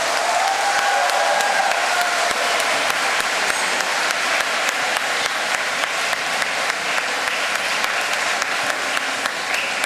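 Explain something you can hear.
A large band plays music in an echoing hall.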